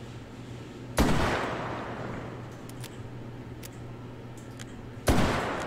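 A revolver fires loud shots that echo outdoors.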